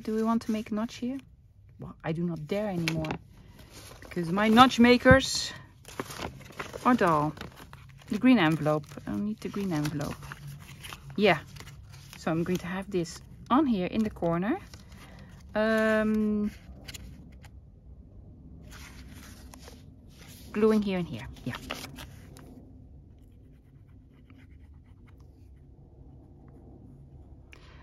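Paper rustles as it is handled.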